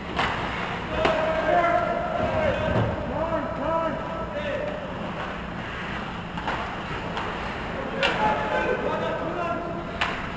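Young hockey players shout to each other across an echoing rink.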